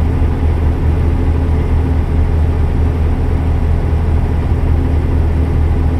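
A truck engine hums steadily with a deep drone.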